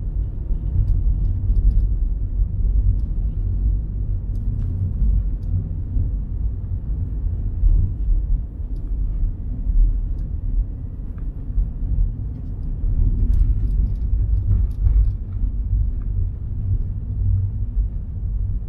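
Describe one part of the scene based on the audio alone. Tyres crunch and hiss over packed snow.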